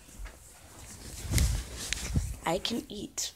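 Rustling and bumping sounds come from a phone being handled.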